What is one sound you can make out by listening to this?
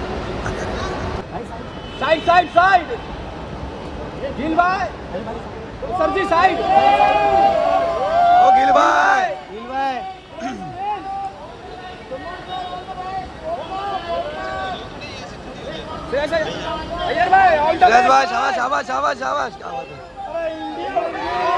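A crowd of men shout and call out.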